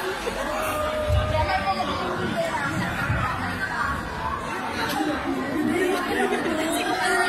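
Festive music plays through loudspeakers in a large echoing hall.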